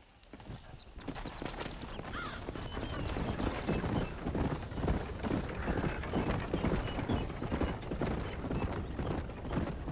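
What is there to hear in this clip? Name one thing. Wooden wagon wheels rumble over a dirt track.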